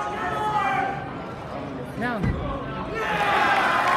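A gymnast lands a dismount with a thud on a mat.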